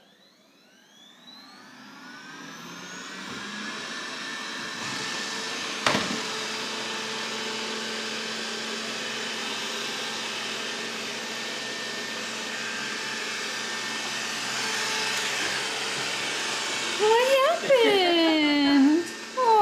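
A robot vacuum starts up and hums with a steady whirring drone.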